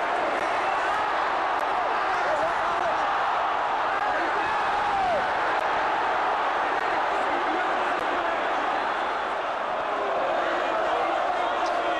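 A large crowd roars steadily in an open stadium.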